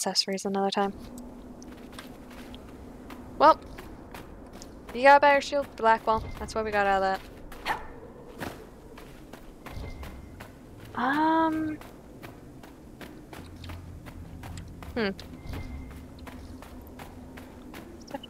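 Footsteps patter quickly on sand.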